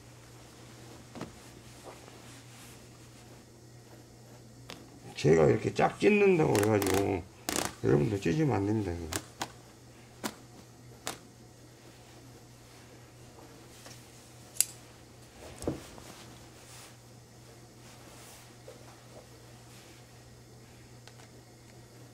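Fabric rustles and crinkles as it is handled.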